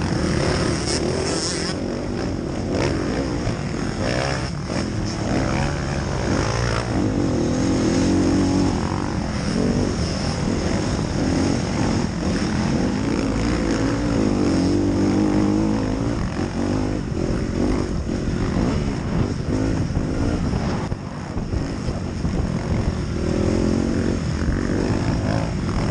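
Wind buffets loudly.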